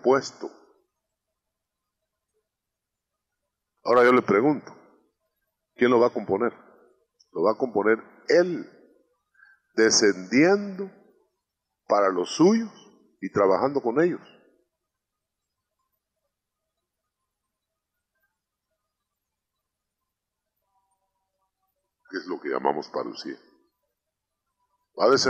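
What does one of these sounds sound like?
A man speaks through a microphone with pauses.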